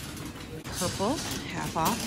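A shopping cart rattles as it rolls.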